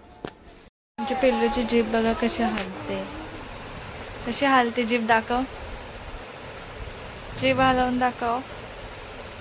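A woman talks softly and playfully, close by.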